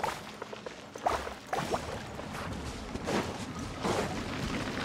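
A magical splash of water whooshes outward in a burst.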